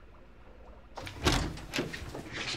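A door latch clicks and the door swings open.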